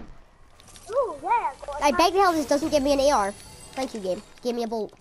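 A treasure chest creaks open with a shimmering jingle.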